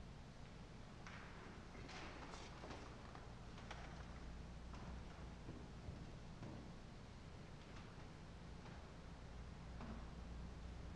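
A man reads aloud quietly, echoing in a large hall.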